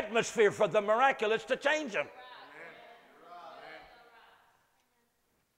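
An older man speaks loudly and with animation in a room with a slight echo.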